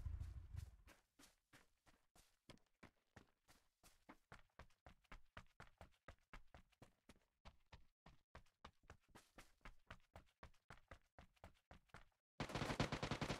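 Footsteps thud quickly and evenly.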